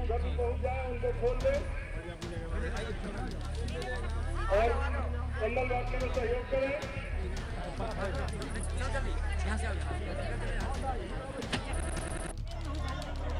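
Several men talk at once nearby.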